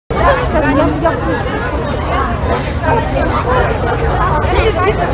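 Children and women chatter together outdoors, many voices overlapping.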